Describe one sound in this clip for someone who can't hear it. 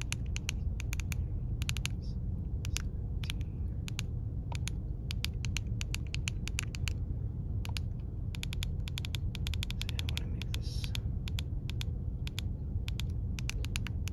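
Buttons on a handheld radio click under a thumb.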